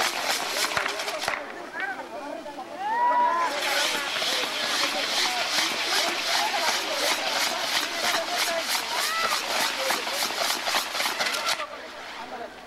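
Fireworks crackle and bang rapidly close by.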